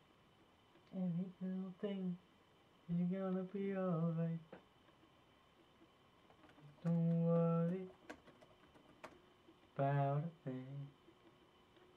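A young man sings softly.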